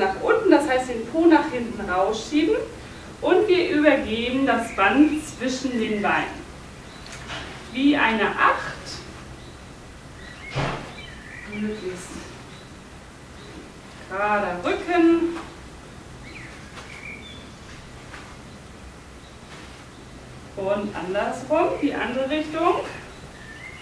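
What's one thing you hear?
A woman speaks calmly and clearly, giving instructions in short bursts.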